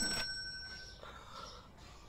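A cash register beeps briefly.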